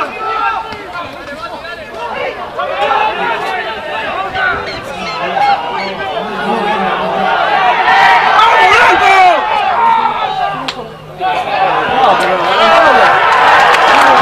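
Young male players shout and call to each other outdoors.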